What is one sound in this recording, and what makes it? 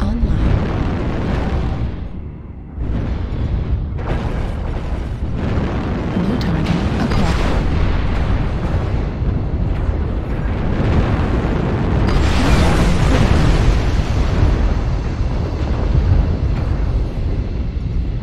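A heavy machine's engine rumbles steadily.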